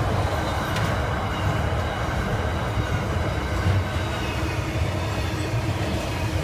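Freight wagon wheels clatter and squeal on the rails.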